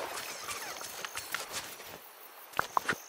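Footsteps patter quickly across grass.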